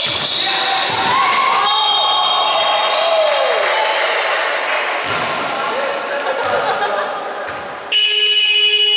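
Young women call out and shout to each other across the court.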